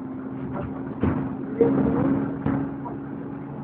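A bus interior rattles and thumps over bumps in the road.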